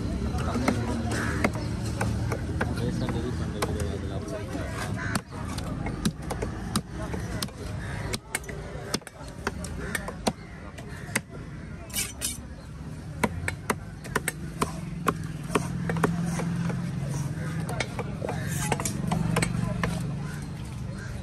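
A cleaver chops through fish on a wooden block with sharp thuds.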